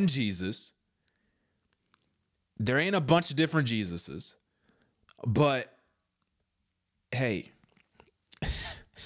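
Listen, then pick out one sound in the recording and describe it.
A man speaks with animation close to a microphone, in short bursts with pauses.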